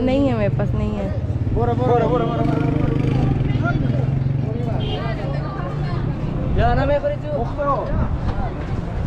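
Men talk nearby with animation outdoors.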